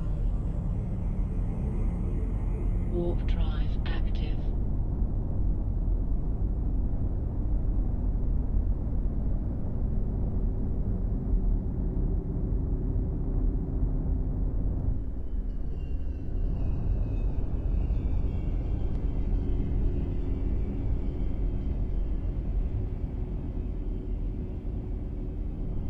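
A spaceship engine rumbles deeply and steadily.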